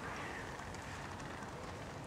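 A hand brushes against rough tree bark.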